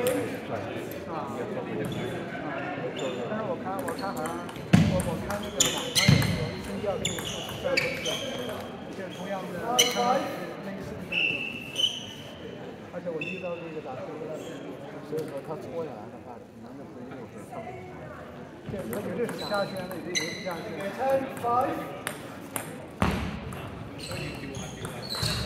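A table tennis ball clicks back and forth on paddles and the table.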